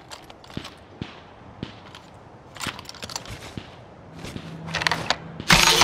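Footsteps knock on wooden boards.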